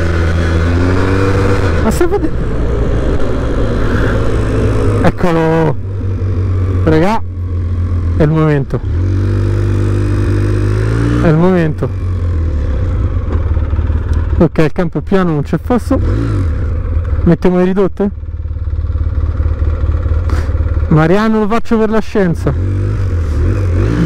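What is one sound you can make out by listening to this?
A quad bike engine runs and revs up and down.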